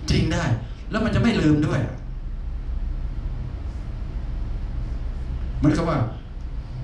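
An elderly man speaks to an audience through a microphone in a large room.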